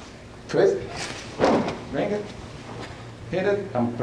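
A body thuds onto a carpeted floor.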